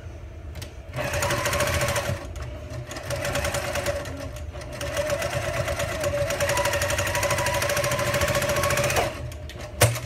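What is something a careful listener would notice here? A sewing machine hums and whirs steadily as it stitches.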